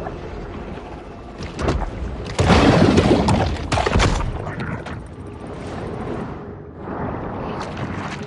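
Water rushes and bubbles in muffled bursts underwater.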